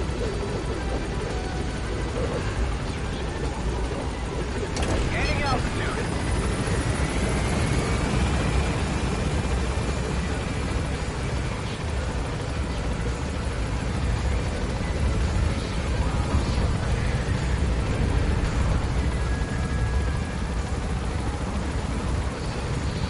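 A helicopter's rotor thumps and roars steadily.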